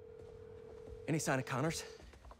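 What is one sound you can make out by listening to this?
A young man speaks calmly into a phone, close by.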